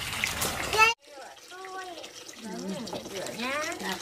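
Hands swish and rub in water.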